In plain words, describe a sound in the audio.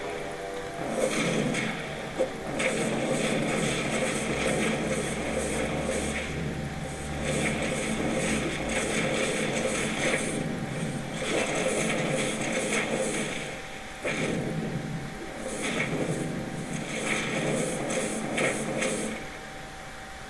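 Fiery spells crackle and roar in rapid bursts.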